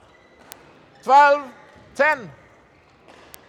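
A young woman shouts loudly twice in a large echoing hall.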